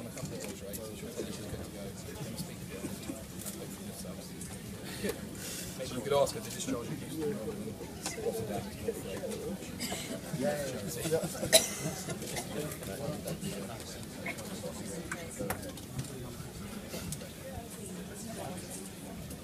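A crowd of men and women chatter in the background.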